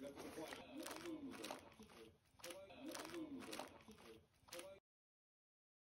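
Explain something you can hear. A dog licks at crinkling plastic wrap.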